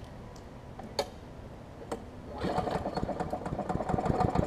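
A starter cord is pulled on a lawn mower.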